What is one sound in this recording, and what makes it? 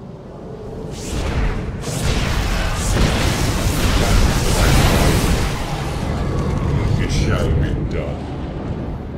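Laser weapons zap and crackle in a loud battle.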